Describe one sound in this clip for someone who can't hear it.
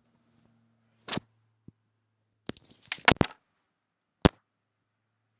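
Knocks and rustles sound close to a microphone as it is handled.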